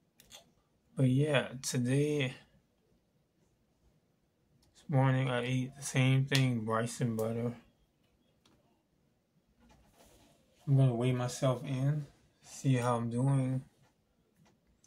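A man speaks calmly and close by, in short phrases with pauses.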